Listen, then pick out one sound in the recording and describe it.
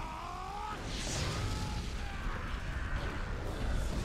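A fiery blast roars.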